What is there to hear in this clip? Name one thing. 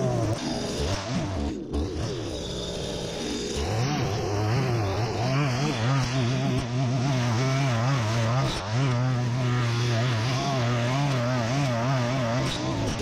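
An electric string trimmer whirs steadily close by.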